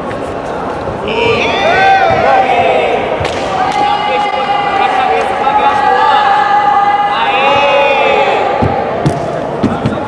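Spectators shout loudly and excitedly.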